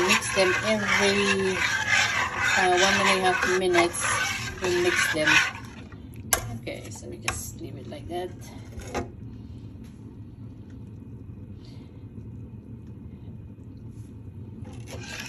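A metal ladle stirs thick soup.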